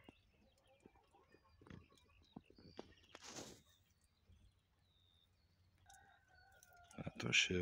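Dry hay rustles and crackles as rabbits shuffle through it.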